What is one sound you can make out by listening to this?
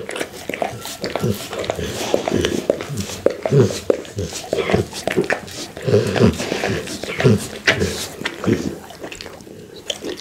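A pit bull licks at a tabletop close to a microphone.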